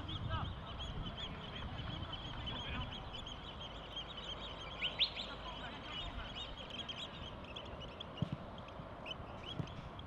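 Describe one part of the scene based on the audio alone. Players call out to each other across an open field, far off.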